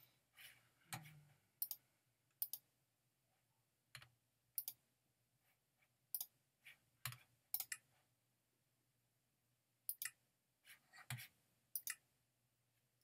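Game menu buttons click sharply, several times.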